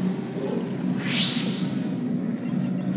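An electronic whoosh rises sharply.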